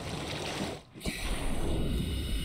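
Water splashes as a swimmer dives under.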